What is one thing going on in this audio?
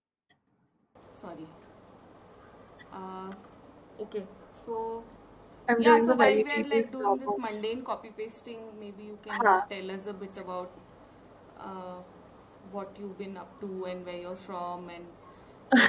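A young woman talks calmly over an online call.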